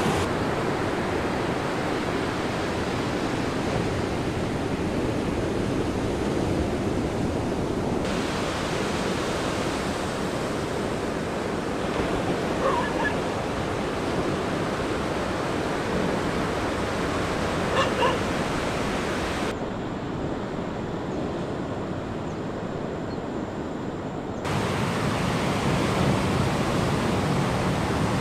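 Waves break and crash onto the shore in a steady roar of surf.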